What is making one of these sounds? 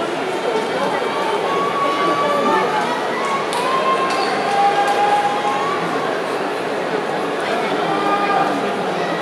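A man calls out in a long, drawn-out sung voice.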